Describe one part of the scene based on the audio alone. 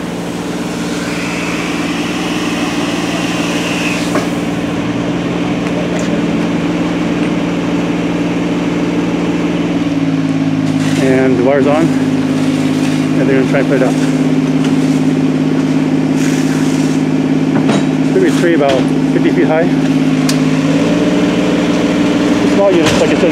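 A fire engine's motor hums steadily nearby.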